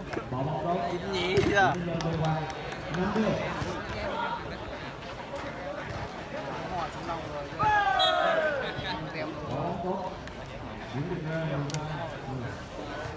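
Young men shout and call out loudly outdoors.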